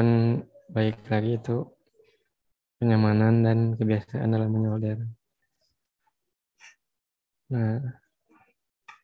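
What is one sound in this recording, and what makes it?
A young man talks calmly through an online call.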